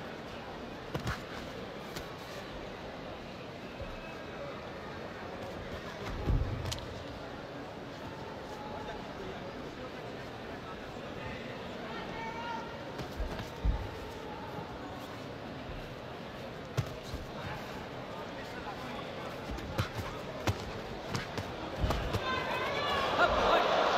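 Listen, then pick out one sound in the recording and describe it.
Boxing gloves thud against bodies in quick blows.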